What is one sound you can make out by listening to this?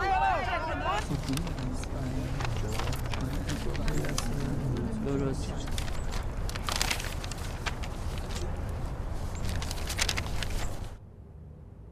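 Paper rustles and crinkles in hands.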